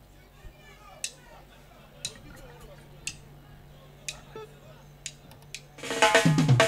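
A drummer taps out a slow, steady count on a cymbal.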